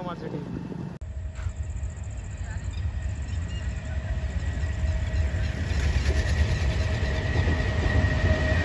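A train rumbles past in the distance.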